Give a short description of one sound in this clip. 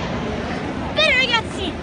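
A young boy calls out close by.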